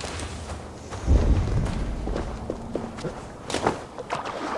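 A body splashes into water and goes under with a deep rumble.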